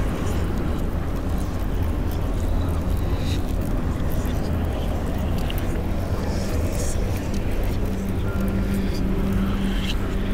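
A pestle grinds and scrapes in a mortar.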